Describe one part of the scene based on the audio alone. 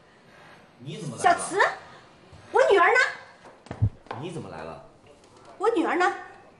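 A middle-aged woman speaks loudly and insistently.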